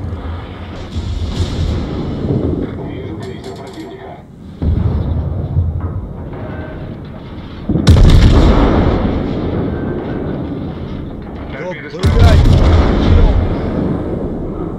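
Heavy naval guns fire with deep booming blasts.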